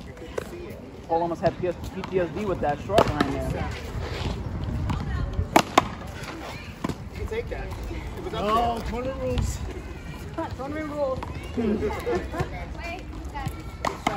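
A man and a woman talk and call out nearby outdoors.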